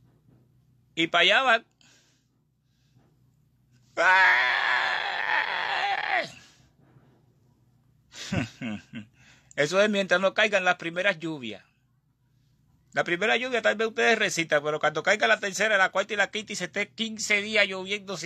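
A man speaks with animation close to a phone microphone, with pauses between phrases.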